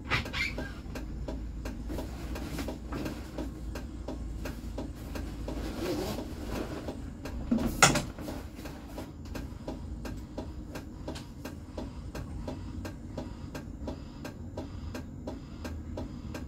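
A tram rolls along its rails with a low, steady rumble.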